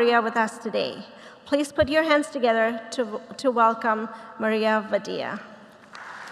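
A woman sings through a microphone in a large echoing hall.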